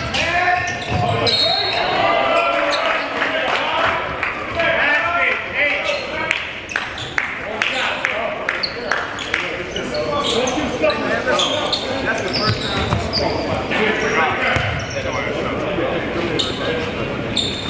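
Men talk and call out to each other in a large echoing gym.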